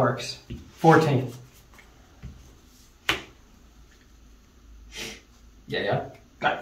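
Playing cards rustle as they are shuffled by hand.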